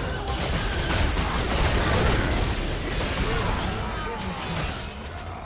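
Video game spell effects whoosh and crash in a busy fight.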